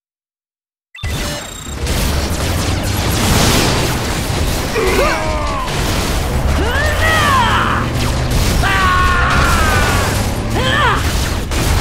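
Blasters fire and explosions boom in a loud robot battle.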